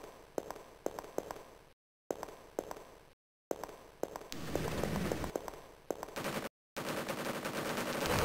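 A weapon fires rapid electronic energy shots in a video game.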